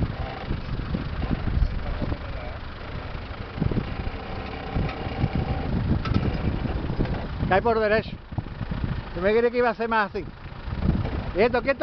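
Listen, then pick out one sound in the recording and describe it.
A vehicle engine rumbles and strains at low speed.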